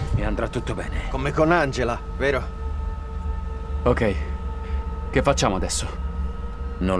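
A young man speaks quietly and tensely nearby.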